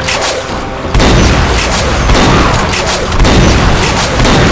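A laser rifle fires in rapid bursts with loud zapping blasts.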